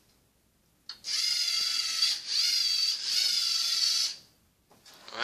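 A small robot's motors whir steadily as it drives.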